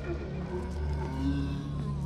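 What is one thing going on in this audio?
A zombie groans and snarls nearby.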